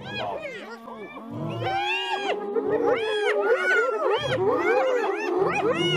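Hyenas whoop and cackle loudly nearby.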